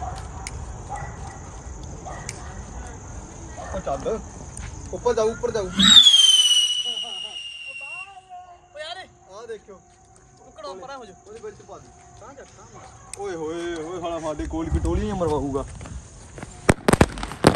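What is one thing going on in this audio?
Young men talk and shout excitedly nearby.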